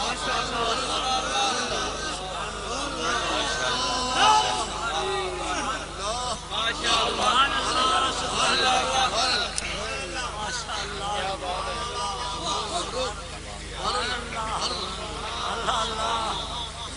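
A man speaks loudly and with fervour into a microphone, heard over loudspeakers.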